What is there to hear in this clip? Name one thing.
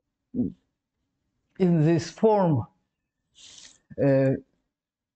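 A woman speaks slowly and clearly, as if lecturing, through a microphone.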